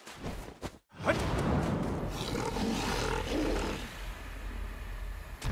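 A large monster roars loudly.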